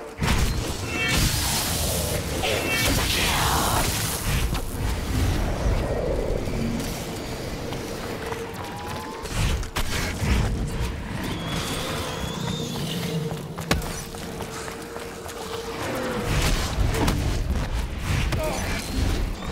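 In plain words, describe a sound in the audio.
Zombies growl and groan.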